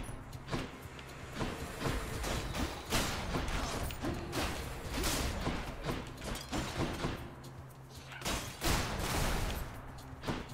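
Game combat sounds clash and whoosh.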